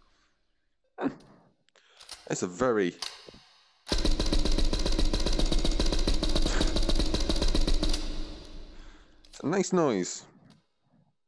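A rifle magazine clicks and scrapes into place.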